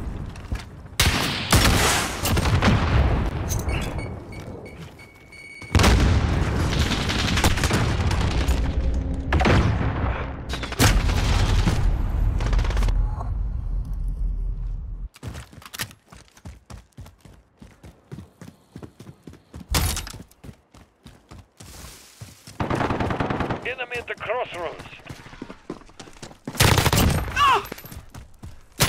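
Gunfire and explosions boom loudly in bursts.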